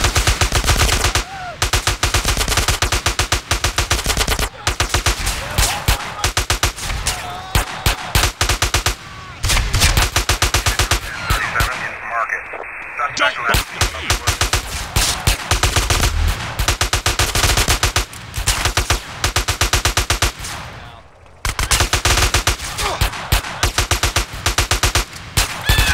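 A rifle fires rapid bursts of shots.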